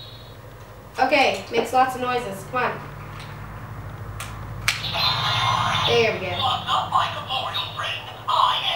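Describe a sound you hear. A girl talks calmly and close by.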